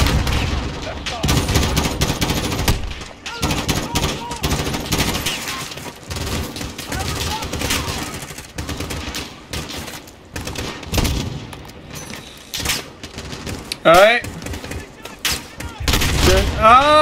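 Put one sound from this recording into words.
Rifle shots crack in rapid bursts.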